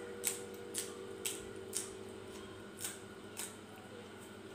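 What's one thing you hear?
A woman crunches food loudly close by.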